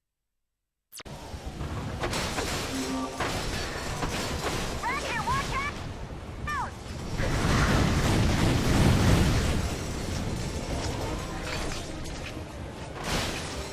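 Explosions boom and debris clatters.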